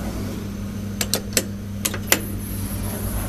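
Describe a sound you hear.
A button clicks a few times as it is pressed.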